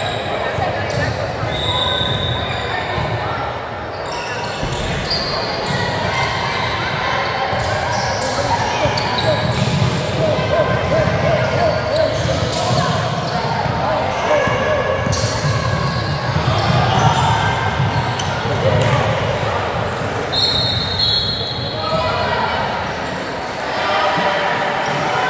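Basketballs bounce in a large echoing gym.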